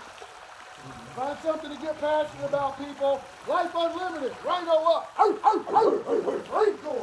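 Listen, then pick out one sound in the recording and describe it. Men in a pool shout and cheer with animation outdoors.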